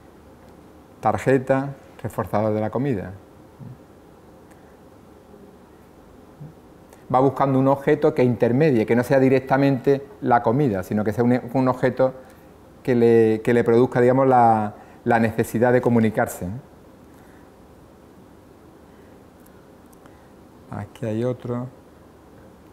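A middle-aged man speaks calmly and thoughtfully, close by.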